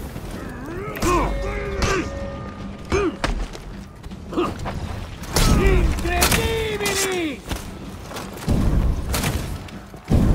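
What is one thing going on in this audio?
Swords clash and ring in a close fight.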